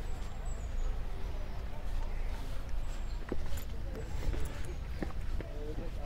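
Footsteps fall on a path outdoors.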